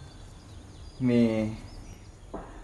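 A man speaks briefly, close by.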